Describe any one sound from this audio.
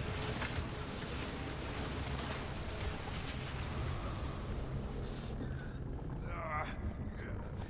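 Hands scrape and grip against rock while climbing.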